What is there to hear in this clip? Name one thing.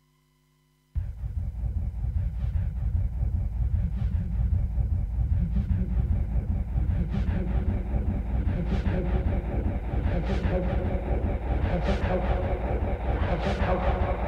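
Electronic dance music plays loudly with a steady thumping beat.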